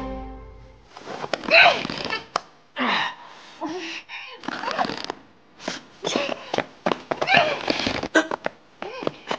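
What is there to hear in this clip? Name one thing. A young woman cries out in alarm nearby.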